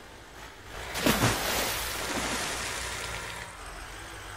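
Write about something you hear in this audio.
Water splashes loudly as a heavy truck ploughs through it.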